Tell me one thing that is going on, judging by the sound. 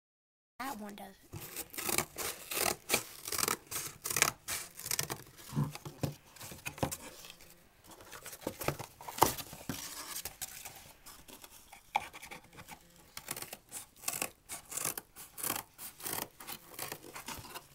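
Scissors snip through cardboard.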